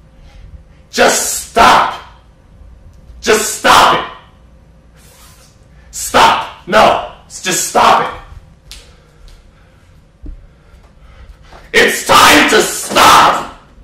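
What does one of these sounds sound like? A young man shouts excitedly in short bursts.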